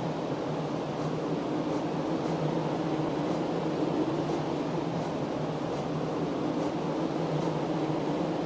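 Faint menu chimes tick now and then.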